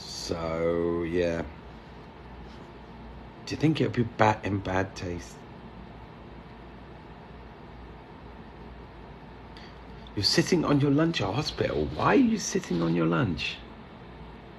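A man speaks in short bursts with pauses, close to a phone microphone.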